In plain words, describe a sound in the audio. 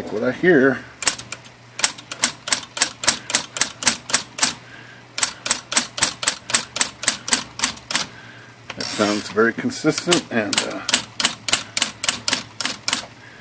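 Typewriter keys clack in quick, even bursts.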